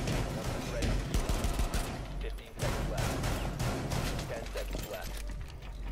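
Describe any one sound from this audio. Pistol shots crack in short, sharp bursts.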